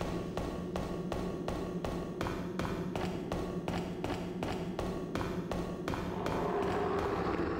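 Heavy footsteps run quickly and evenly on stone, climbing steps.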